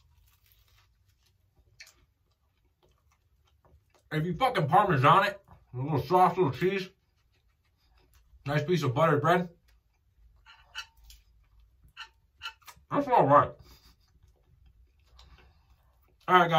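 A man chews food with soft smacking sounds.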